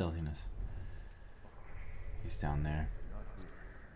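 A young man speaks briefly into a nearby microphone.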